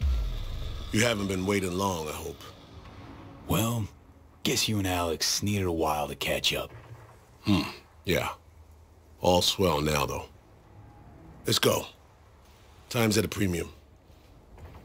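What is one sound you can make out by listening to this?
A man speaks calmly and close by, in a deep voice.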